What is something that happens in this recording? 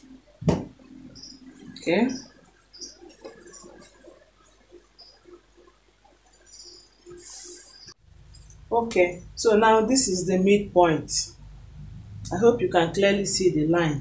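Cloth rustles as it is handled and spread out.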